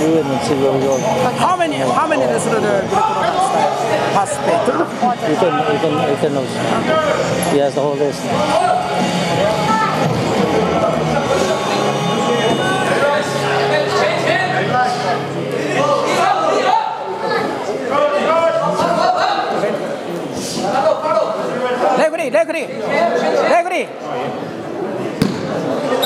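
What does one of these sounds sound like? Men and women in a crowd chatter and call out in a large echoing hall.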